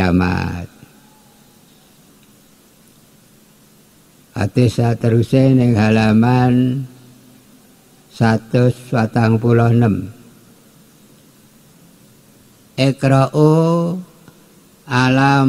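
An elderly man chants a reading slowly and melodiously into a microphone, with pauses between phrases.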